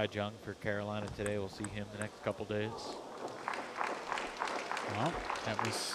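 A ball clicks back and forth on paddles and a table.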